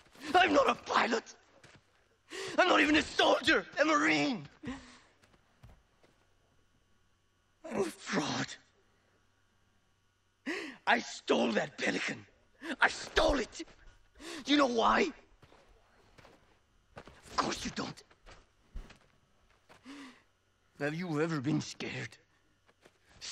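A man speaks with animation, in short bursts with pauses.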